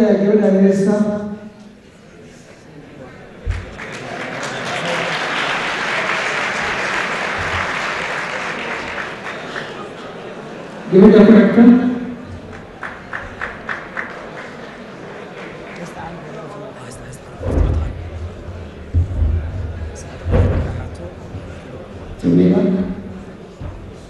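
A young man shouts with animation into a microphone over loudspeakers, in a large echoing hall.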